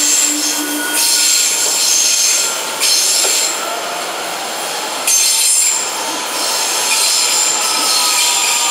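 A train's wheels squeal on the rails.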